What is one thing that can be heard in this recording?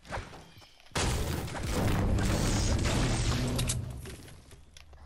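A pickaxe strikes a wooden wall with repeated knocks.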